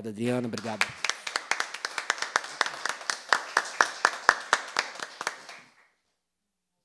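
A small group of people applaud.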